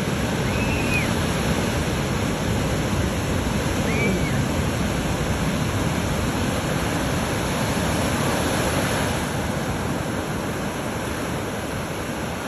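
Ocean waves crash and roar steadily close by.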